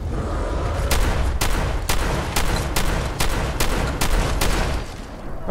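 A rifle fires a series of loud shots.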